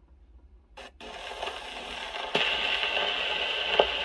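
A gramophone record hisses and crackles as it plays.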